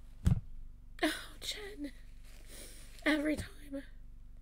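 A young woman speaks tearfully and emotionally, close to a microphone.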